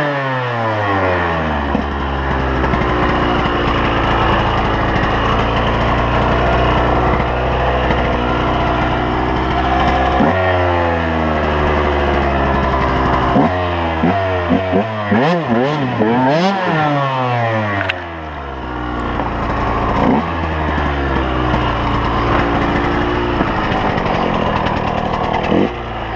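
A dirt bike engine idles with a steady low rumble between revs.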